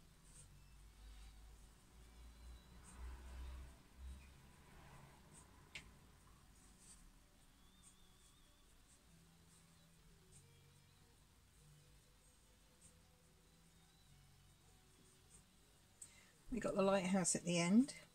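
A paintbrush softly brushes paint onto a board.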